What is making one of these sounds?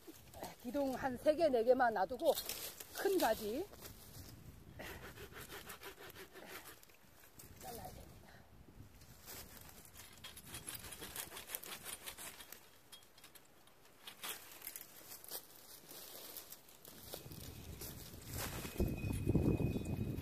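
Pruning shears snip through thin tree branches.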